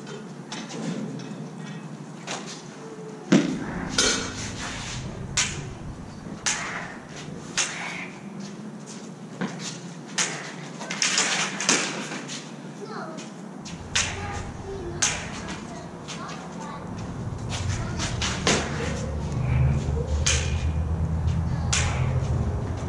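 Sticks clack sharply as two fighters spar, echoing in a large hard-walled room.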